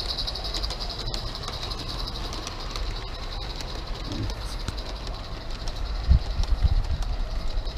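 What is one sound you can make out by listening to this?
A model train rumbles and clicks along its track.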